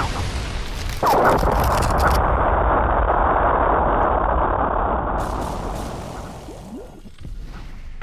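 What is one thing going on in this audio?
A loud magical blast roars and rumbles.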